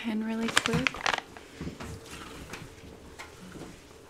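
Plastic crinkles and rustles in gloved hands.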